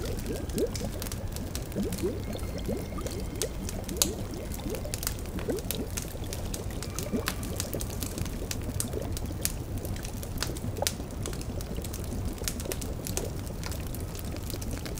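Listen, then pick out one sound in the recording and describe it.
A cauldron bubbles and gurgles.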